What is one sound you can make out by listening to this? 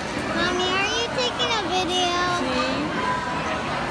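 A young boy speaks brightly, close by.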